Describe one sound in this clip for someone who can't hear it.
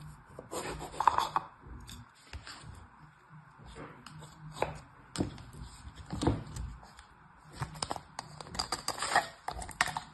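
Sand crumbles and rustles as fingers press it.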